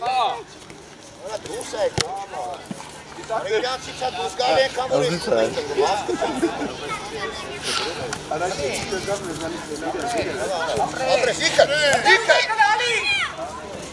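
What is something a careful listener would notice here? A football thuds as a child kicks it.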